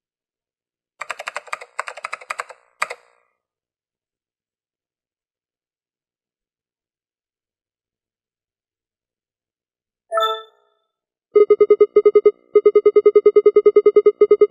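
Short electronic beeps tick rapidly.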